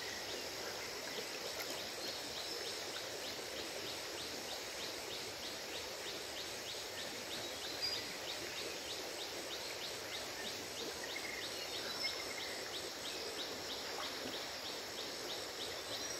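A river flows gently by.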